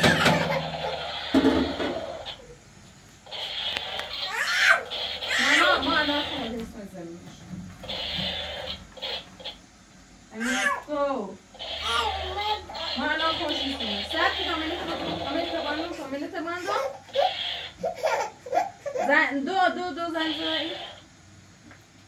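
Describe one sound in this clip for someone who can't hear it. A small child babbles nearby.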